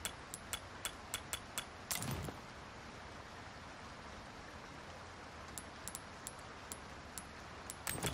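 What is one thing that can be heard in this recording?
Short menu clicks tick at a quick, uneven pace.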